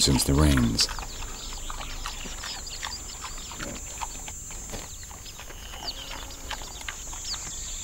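A warthog tears and crunches short grass while grazing.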